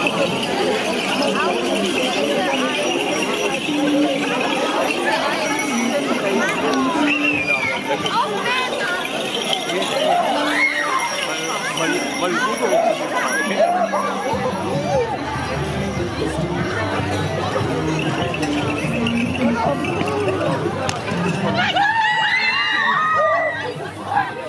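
Masked figures shriek and hoot in high voices.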